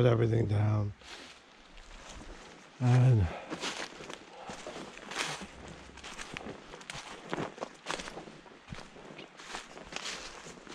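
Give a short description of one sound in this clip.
Dry leaves crunch and rustle underfoot as someone walks.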